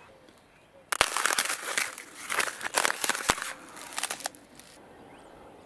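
Footsteps crunch on frozen, muddy ground up close.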